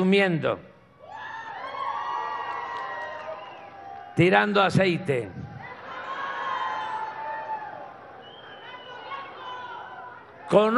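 A crowd laughs and murmurs.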